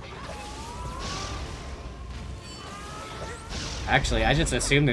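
Electronic game sound effects whoosh and chime.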